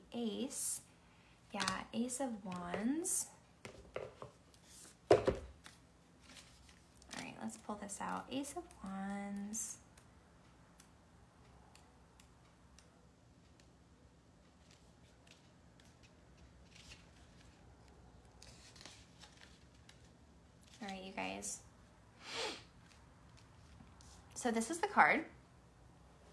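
A young woman speaks calmly and close by, in short bursts.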